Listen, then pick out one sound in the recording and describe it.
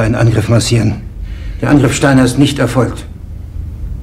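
A middle-aged man speaks.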